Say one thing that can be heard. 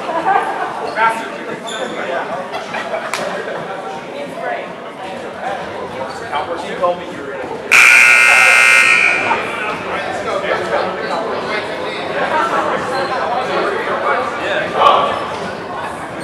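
A man talks to a group of players close by.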